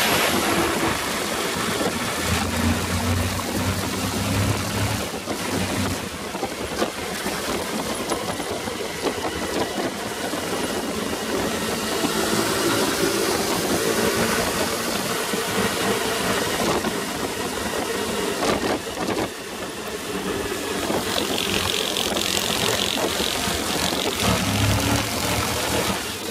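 Wind roars loudly past the microphone on a moving motorcycle.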